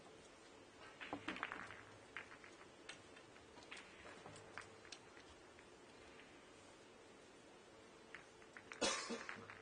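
Balls knock softly as they are set down on the table.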